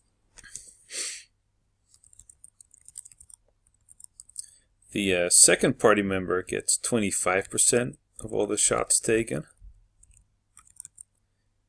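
Short electronic menu blips chirp now and then.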